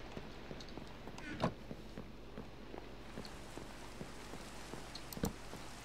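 Footsteps tap across a hard wooden floor.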